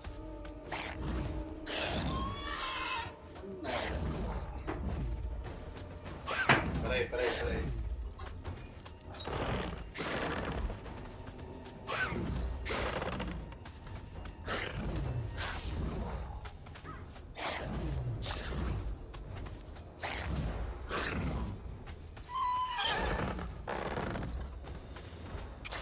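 Large creatures clash and roar in a fight.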